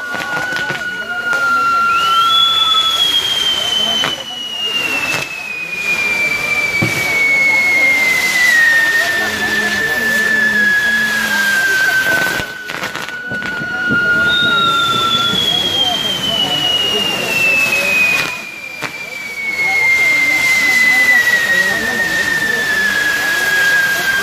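Fireworks crackle and sizzle loudly and without pause.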